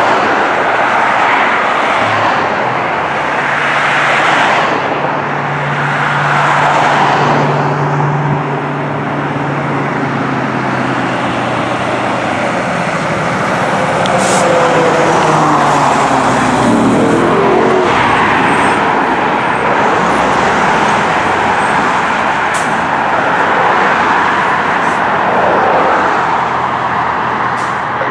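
A siren wails, rising and falling, from a fire engine.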